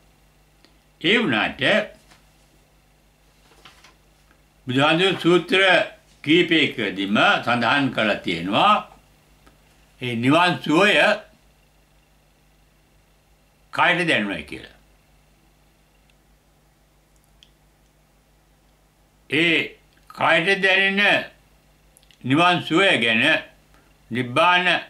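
An elderly man speaks calmly and slowly close to a microphone, with long pauses.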